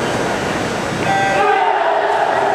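A start signal beeps sharply.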